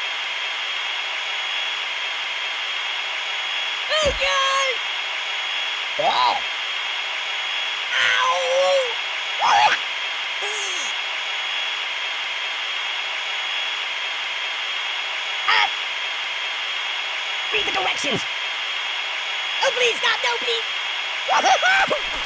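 A power drill whirs steadily.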